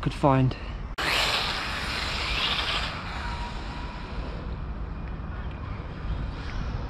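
A toy car's electric motor whines as it speeds away.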